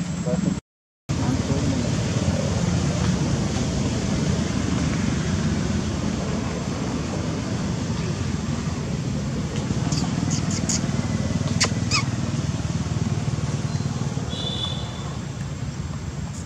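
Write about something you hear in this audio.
A baby monkey suckles softly at close range.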